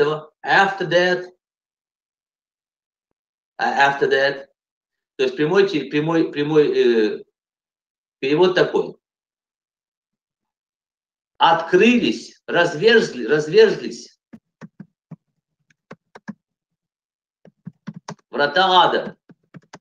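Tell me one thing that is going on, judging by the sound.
A middle-aged man speaks calmly in short phrases, close to the microphone, heard over an online call.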